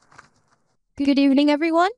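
A young woman speaks clearly into a microphone, heard through loudspeakers.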